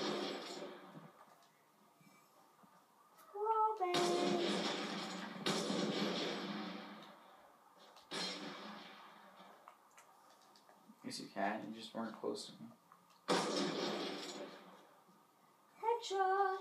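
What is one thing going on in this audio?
Gunshots from a video game boom through a television speaker, each blast trailing off in echo.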